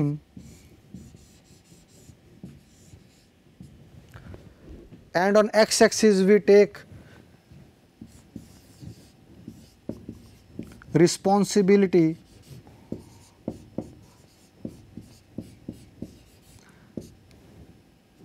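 A marker taps and squeaks on a whiteboard.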